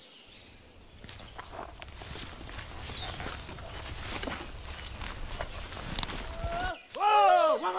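Dry leaves rustle and crackle as an animal moves through them.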